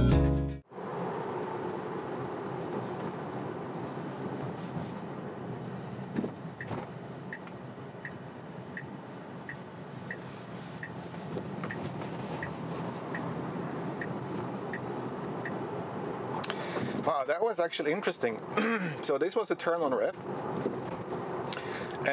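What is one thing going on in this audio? Tyres hum steadily on the road from inside a moving car.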